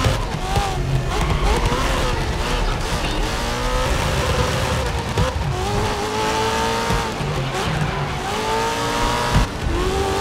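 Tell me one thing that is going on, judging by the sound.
A racing car engine roars and whines as it shifts gears.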